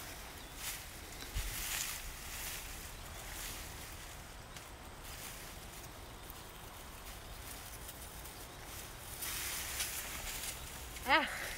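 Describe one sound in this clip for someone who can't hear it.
Dry stalks rustle and snap as they are pulled up by hand.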